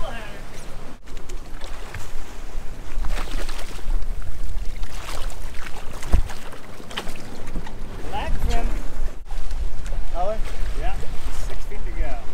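Water splashes and rushes against a boat's hull.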